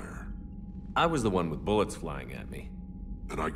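A man answers calmly.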